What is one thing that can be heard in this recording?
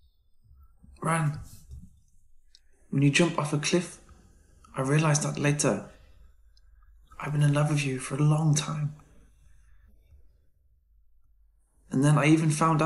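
A young man speaks softly and slowly, close by.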